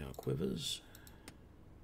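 A middle-aged man speaks briefly and calmly into a close microphone.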